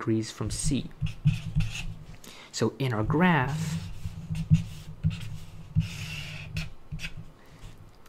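A marker squeaks and scratches across paper in short strokes.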